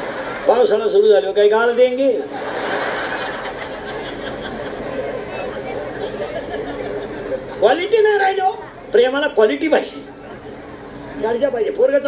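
An elderly man sings loudly through a microphone.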